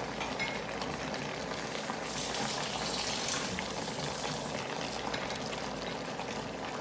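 Food sizzles and crackles steadily in a hot pan.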